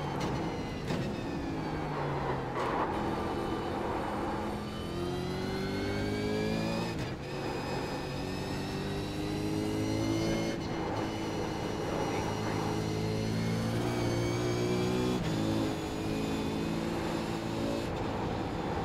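A racing car engine roars loudly, rising in pitch and dropping with each gear change.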